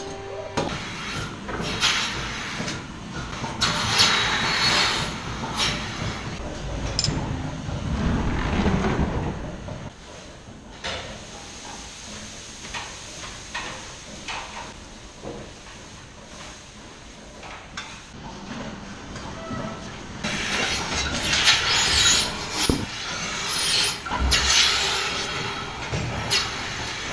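A milking machine hisses and pulses steadily.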